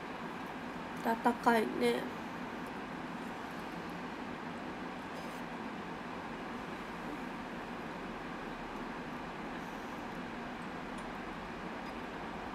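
A young woman slurps and eats noodles close to a microphone.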